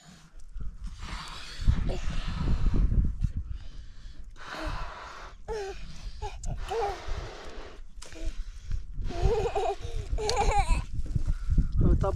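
A young man blows hard into a balloon in short puffs.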